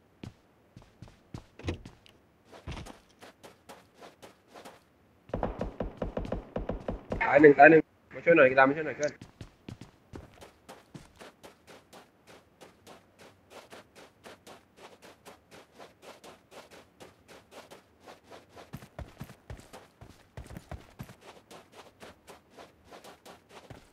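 Footsteps crunch quickly on dry ground.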